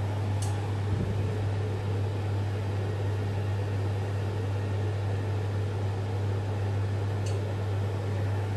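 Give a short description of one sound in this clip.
A power inverter hums steadily and low.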